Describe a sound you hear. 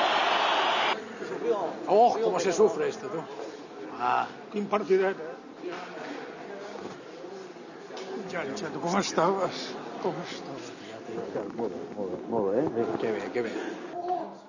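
Men talk nearby in lively voices.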